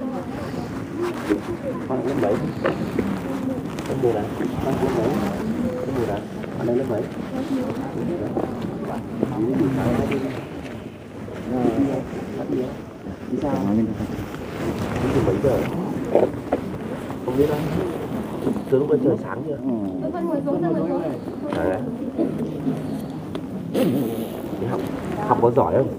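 A man speaks calmly close by.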